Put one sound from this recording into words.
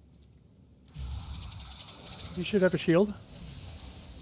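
A burst of crackling energy roars and whooshes.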